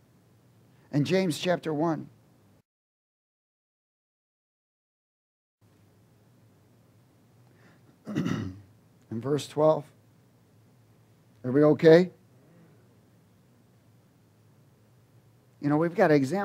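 A man speaks with animation into a microphone, in short bursts with pauses.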